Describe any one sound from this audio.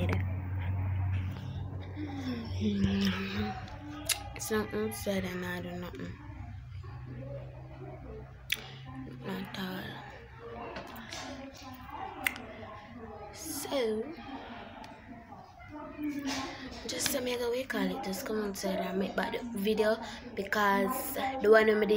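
A young girl talks animatedly close to a phone microphone.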